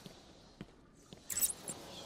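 Small metal blades whoosh through the air.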